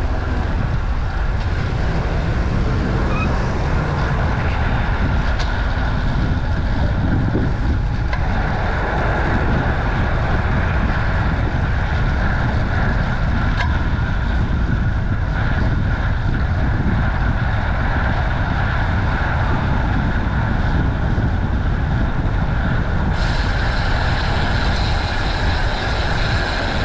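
Wind rushes loudly past a bicycle rider.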